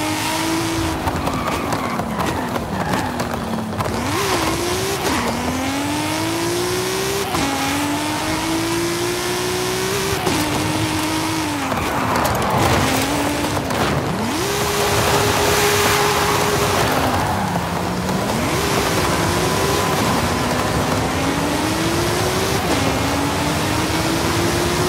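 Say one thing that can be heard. A car engine revs hard, rising and dropping in pitch through gear changes.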